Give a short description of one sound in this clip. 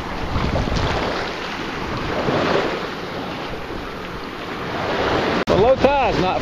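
Small waves lap and wash up onto sand.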